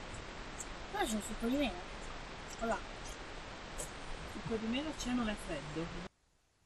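A boy talks casually nearby.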